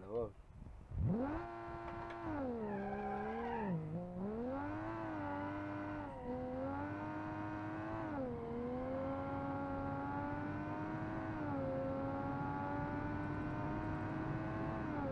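A car engine revs up and roars as it accelerates through gear changes.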